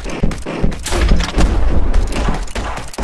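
A rocket explodes with a loud, booming blast.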